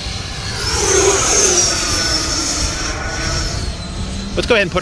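A model jet's turbine whines high overhead and fades as it flies off.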